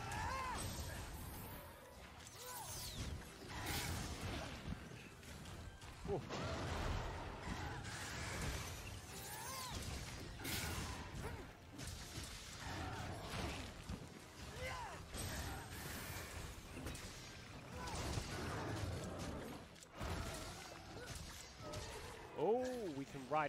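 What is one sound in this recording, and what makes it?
Sword strikes clash and thud against a monster.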